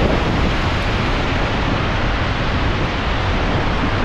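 Footsteps crunch on loose rocks.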